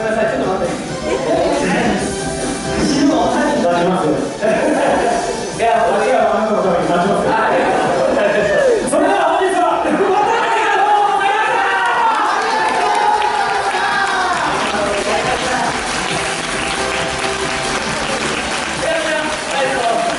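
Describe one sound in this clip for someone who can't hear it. Young men and women on a stage speak and call out in turns, echoing in a large hall.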